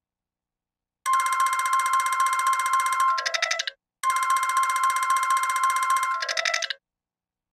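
A game's score counter ticks rapidly upward in two quick bursts.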